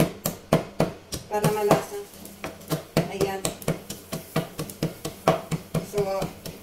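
A spoon clinks repeatedly against a glass.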